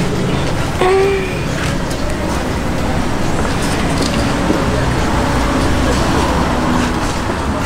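A cloth rubs against a car's surface.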